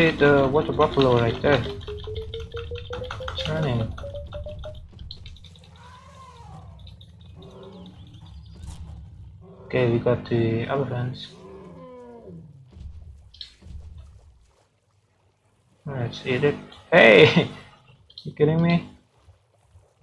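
A lion growls and roars in bursts.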